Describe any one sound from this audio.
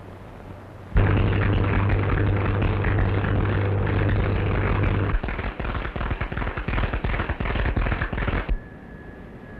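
Electric sparks crackle and buzz loudly.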